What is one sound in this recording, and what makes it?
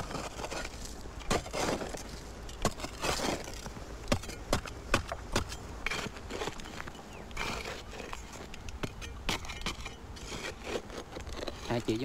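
A metal tool scrapes and clicks against dry soil.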